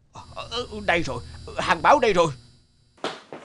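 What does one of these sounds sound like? A man exclaims in an excited, cartoonish voice.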